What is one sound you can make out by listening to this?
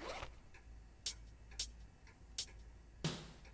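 Short electronic menu clicks tick as selections change.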